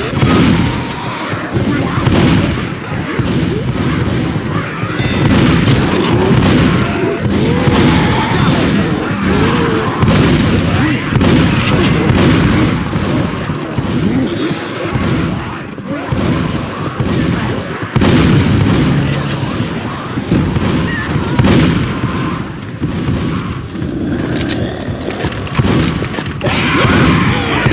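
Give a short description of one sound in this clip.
A shotgun fires loud blasts again and again.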